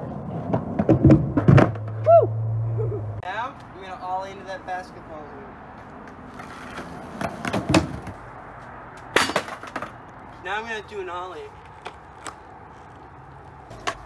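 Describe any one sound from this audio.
A skateboard rolls and clacks on concrete.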